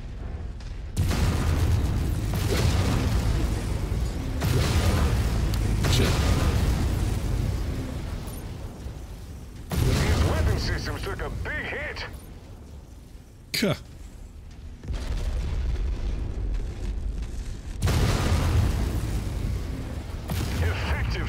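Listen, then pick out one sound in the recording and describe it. Energy weapons fire with a loud, crackling buzz.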